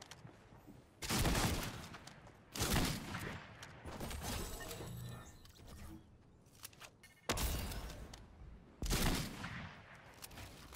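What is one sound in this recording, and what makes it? Loud gunshots blast in short bursts.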